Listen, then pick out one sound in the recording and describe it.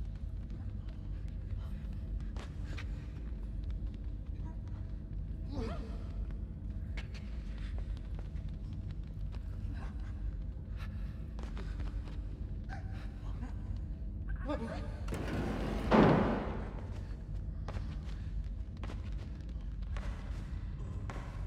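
Many footsteps shuffle together across a hard floor.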